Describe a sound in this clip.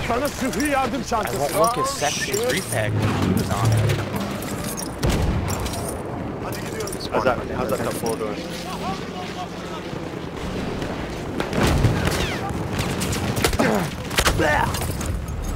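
Explosions boom nearby with deep rumbles.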